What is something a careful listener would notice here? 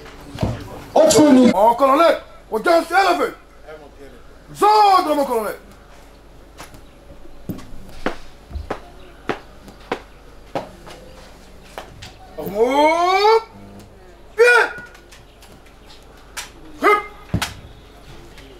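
A man shouts loud, sharp commands.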